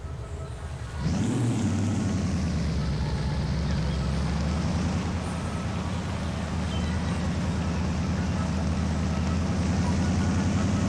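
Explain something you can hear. A car engine revs up loudly and roars as the car drives off.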